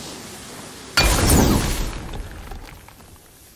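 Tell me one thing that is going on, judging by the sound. A fiery blast bursts with a loud whoosh and crackle.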